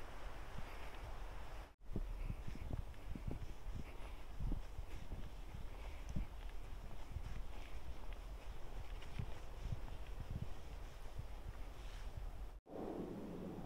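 Footsteps crunch on dry leaves and pine needles.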